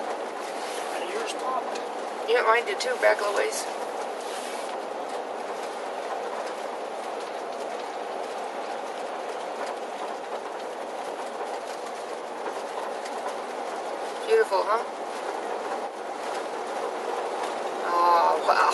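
Tyres hum steadily on a paved road, heard from inside a moving vehicle.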